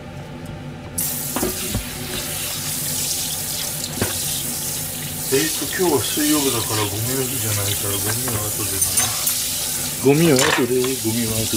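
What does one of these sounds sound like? Water runs steadily from a tap and splashes into a metal sink.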